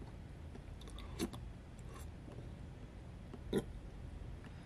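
A man slurps food from a spoon up close.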